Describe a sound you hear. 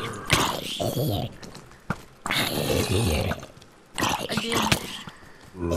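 A zombie is struck with sharp hits.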